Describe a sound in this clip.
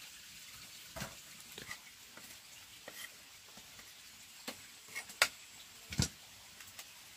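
A knife chops vegetables with sharp knocks.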